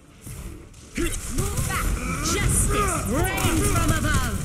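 A loud explosion bursts and roars close by.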